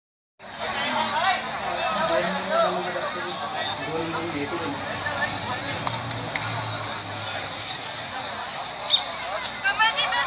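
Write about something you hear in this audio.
A crowd of men chatters outdoors in a dense, overlapping murmur.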